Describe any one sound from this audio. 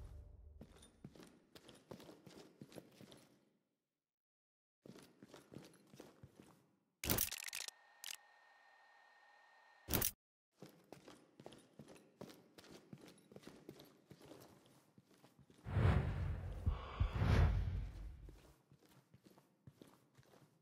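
Footsteps thud up concrete stairs and along a corridor.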